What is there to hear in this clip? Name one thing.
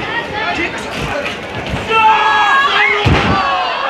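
Wrestlers' feet and bodies thud on a wrestling ring's canvas.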